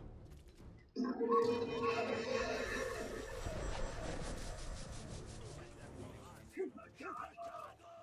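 A large beast growls and snarls.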